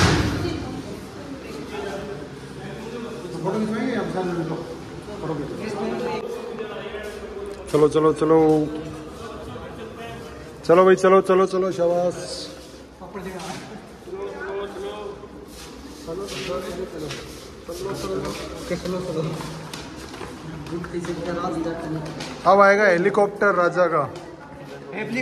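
Young men and women chatter in the background.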